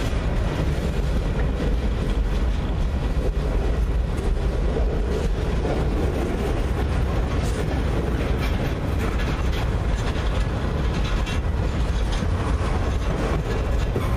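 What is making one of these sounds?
A long freight train rumbles past close by, steady and loud.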